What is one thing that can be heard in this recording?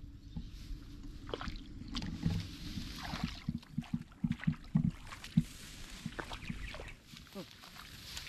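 Footsteps splash and squelch through shallow muddy water.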